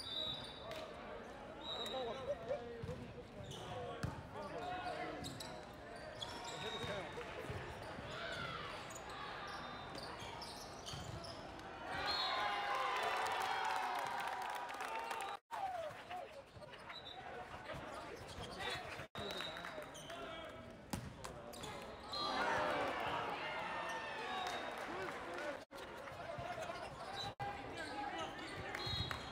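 Young men talk and shout together in a large echoing hall.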